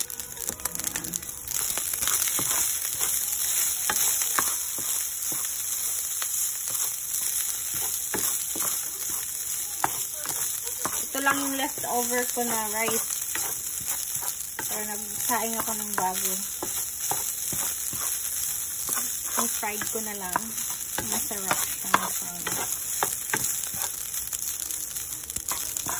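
Rice sizzles steadily in a hot pan.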